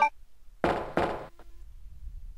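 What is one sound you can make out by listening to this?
Footsteps ring on a metal floor.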